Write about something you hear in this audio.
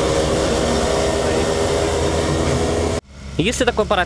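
A hovercraft engine roars steadily as the craft glides past.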